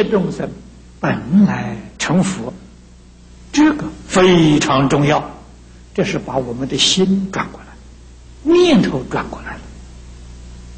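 An elderly man speaks calmly and slowly through a microphone, with pauses between phrases.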